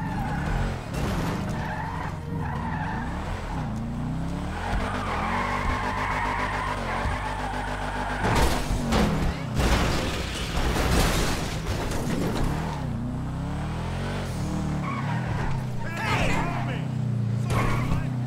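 A rally car engine revs hard and changes gear.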